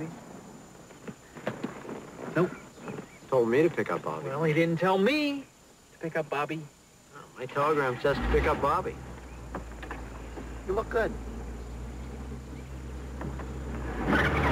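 A man answers in a low, earnest voice nearby.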